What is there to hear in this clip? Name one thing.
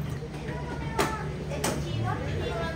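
Dishes clatter.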